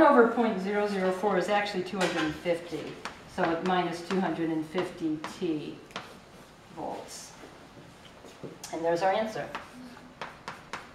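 A woman speaks calmly and clearly, as if explaining.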